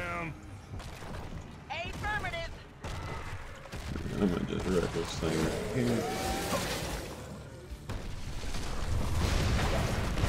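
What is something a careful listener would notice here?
Magic blasts and blows crackle and thud in a fast battle.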